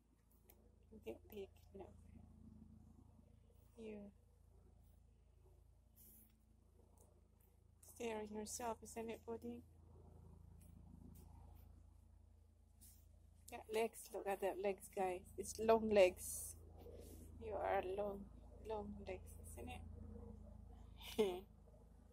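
A woman talks softly and close by, in short bursts.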